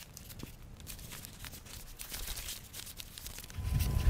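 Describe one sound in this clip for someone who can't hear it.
Paper crinkles as it is rolled up.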